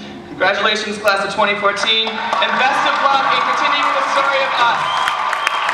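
A young man speaks into a microphone in a large echoing hall.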